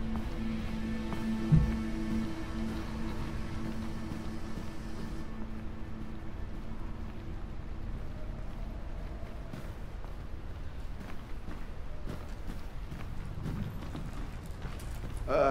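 Footsteps thud on wooden stairs and floors.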